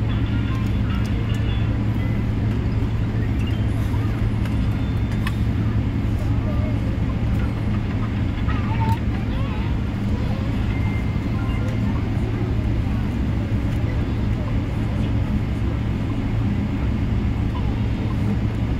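A jet airliner's engines hum steadily from inside the cabin as the plane taxis.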